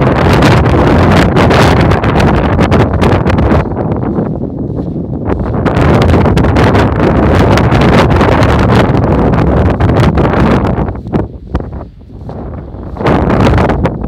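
Strong wind rumbles and buffets against the microphone in gusts outdoors.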